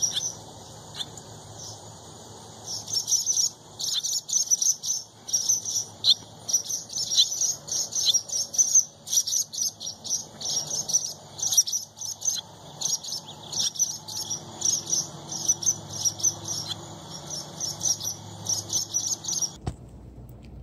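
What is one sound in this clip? Small birds chirp and twitter rapidly outdoors.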